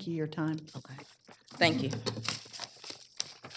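A woman speaks into a microphone.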